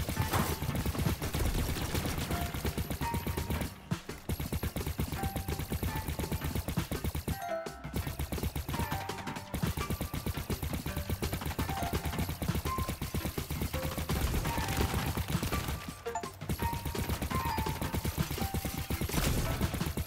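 Rapid laser shots fire in quick bursts.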